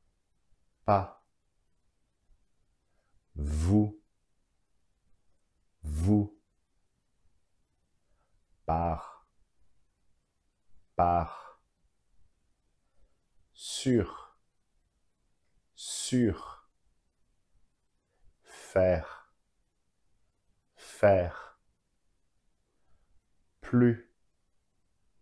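A man pronounces single words one at a time, clearly and slowly, close to a microphone, with pauses between them.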